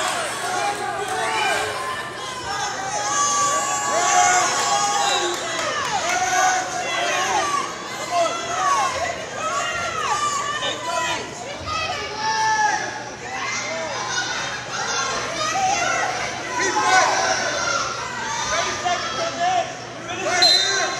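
A man nearby shouts encouragement loudly.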